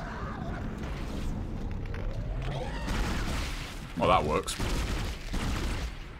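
A monstrous creature shrieks and snarls.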